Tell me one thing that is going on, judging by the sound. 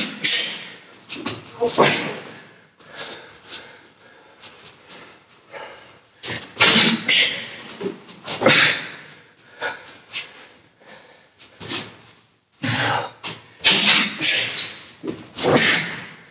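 A man's gi snaps sharply as he punches and kicks.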